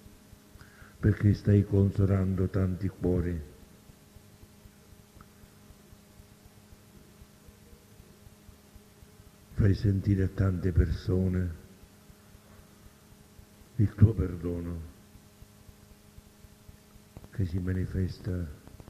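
An elderly man speaks calmly in short phrases with long pauses, heard through a recording.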